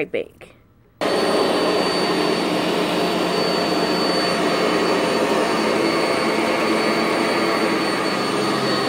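A vacuum cleaner starts and runs with a loud, steady whir.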